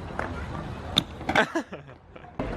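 A bike lands hard on concrete with a clatter.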